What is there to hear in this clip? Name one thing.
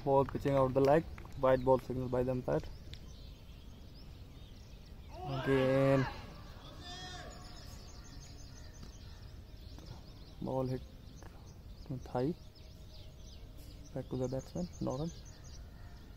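Men call out across an open field.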